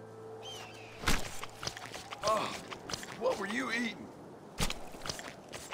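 A blade slashes into flesh with a sharp thud.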